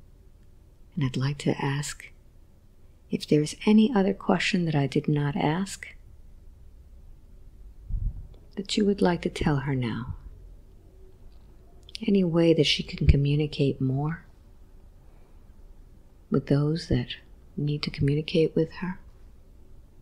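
A woman speaks softly and calmly, close to a microphone.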